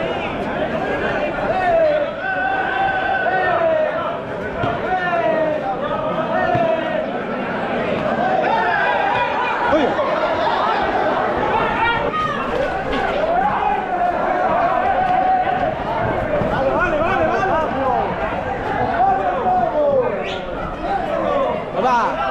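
A large crowd shouts and cheers outdoors.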